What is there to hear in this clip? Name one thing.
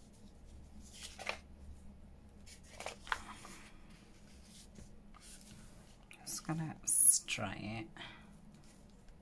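Paper rustles and slides as hands press and smooth it.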